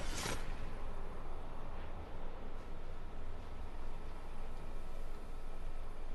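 Wind rushes softly past during a glide.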